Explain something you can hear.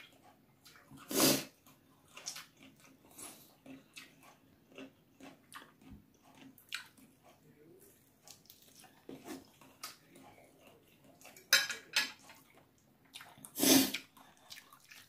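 A woman chews and crunches food close by.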